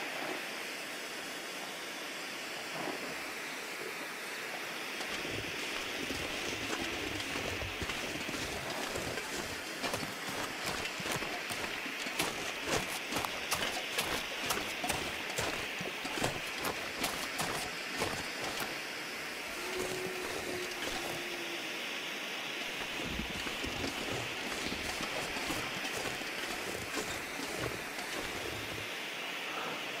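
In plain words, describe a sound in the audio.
A flare hisses and crackles steadily.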